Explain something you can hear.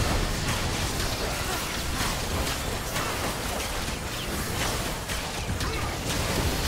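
Spell effects and magic blasts crackle and boom in a video game battle.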